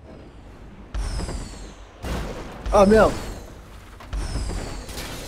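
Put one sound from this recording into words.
A car lands hard with heavy thuds.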